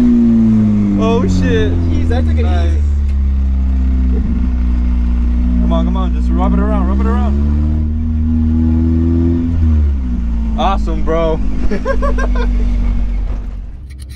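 A young man talks and laughs with excitement close by over the engine.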